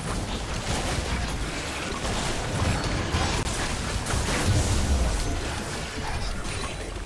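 Game spell effects whoosh, crackle and burst in quick succession.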